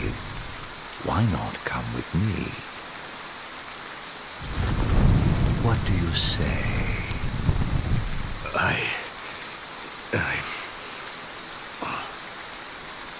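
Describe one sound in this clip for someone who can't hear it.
A young man groans and gasps in pain close by.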